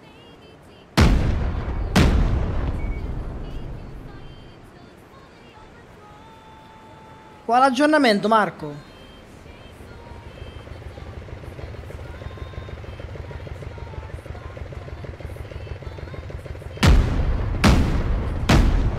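A cannon fires with loud, booming blasts.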